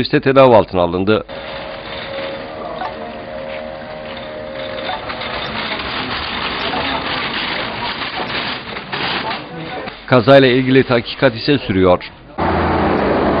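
Stretcher wheels rattle as the stretcher rolls along a hard floor.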